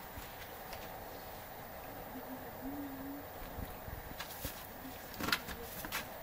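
A horse shuffles its hooves on straw bedding nearby.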